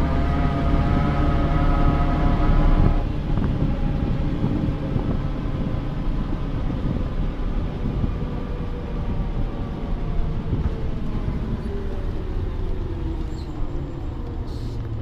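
A bus engine whines, its pitch slowly falling as the bus slows.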